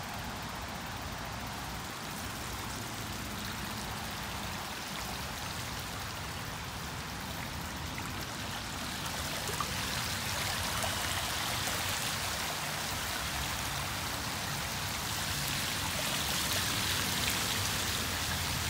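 Bicycle tyres swish steadily through shallow water, growing louder.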